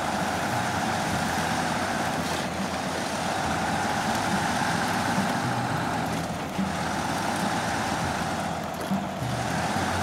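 Tyres crunch through deep snow.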